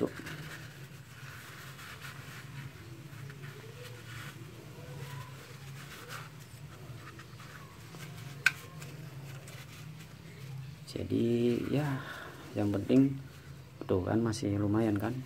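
A cloth rag rubs softly against a small metal part.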